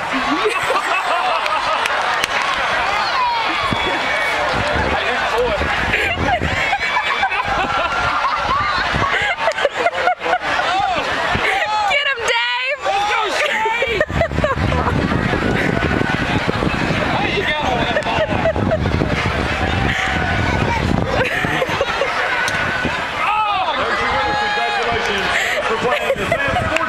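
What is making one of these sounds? Children shout and cheer excitedly outdoors, some way off.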